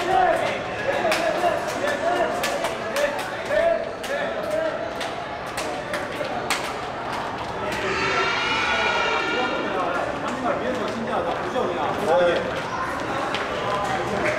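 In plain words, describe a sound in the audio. Football boots clatter on a hard floor as players walk past.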